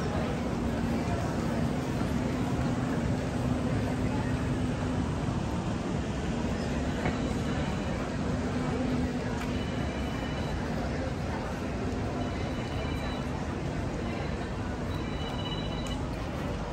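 Footsteps shuffle on a paved street.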